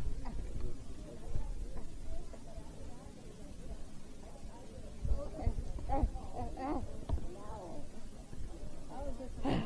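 Plastic packaging rustles and bumps against a handheld recorder.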